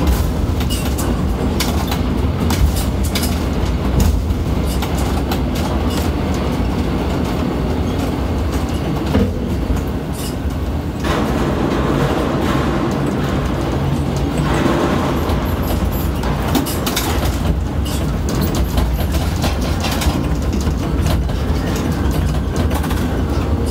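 Metal clanks and knocks echo sharply.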